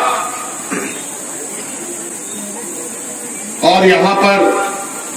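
A man speaks forcefully into a microphone over a loudspeaker outdoors.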